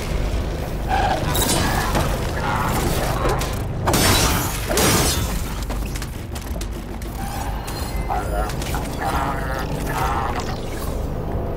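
A large machine creature roars and screeches.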